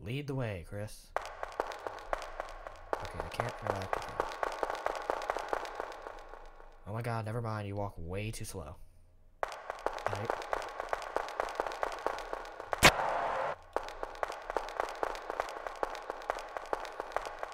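Light electronic game music plays steadily.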